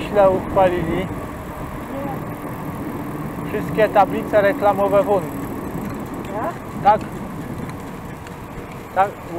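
Bicycle tyres roll steadily on smooth asphalt.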